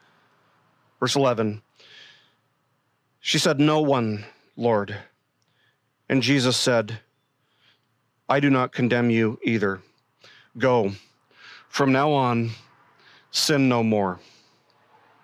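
A man reads aloud calmly into a microphone, with pauses between phrases.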